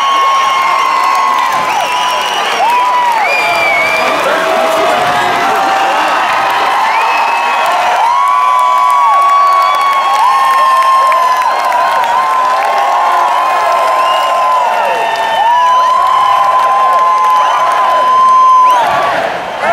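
A large crowd sings along loudly in a big echoing hall.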